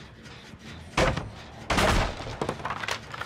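Wooden boards crash and splinter as they break apart.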